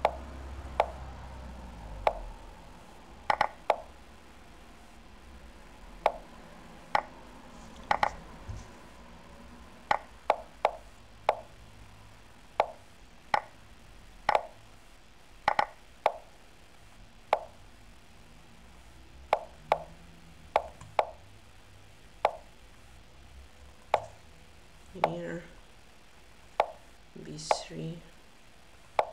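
Chess pieces click sharply as moves are played, in quick succession.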